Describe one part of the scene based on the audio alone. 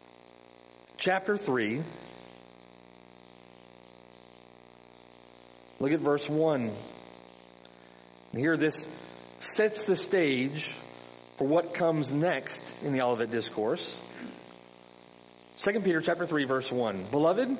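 A middle-aged man speaks calmly into a microphone, with pauses, in a reverberant room.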